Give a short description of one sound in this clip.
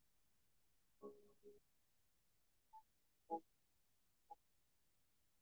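A young woman speaks briefly and softly into a close microphone.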